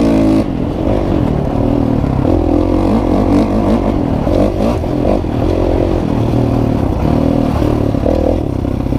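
A dirt bike engine revs and changes pitch up and down, close by.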